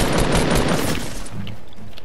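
A pickaxe strikes wood.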